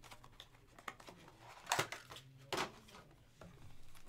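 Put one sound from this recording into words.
Cardboard boxes tap and knock as they are handled.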